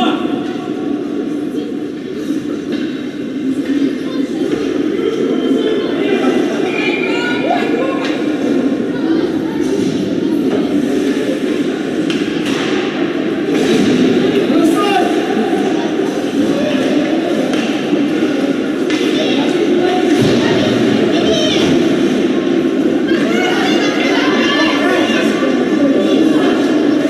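A crowd of spectators murmurs and chatters in a large echoing arena.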